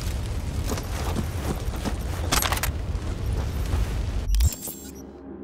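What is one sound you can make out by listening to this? Flames roar and crackle nearby.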